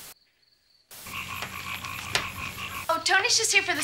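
Young women talk with each other.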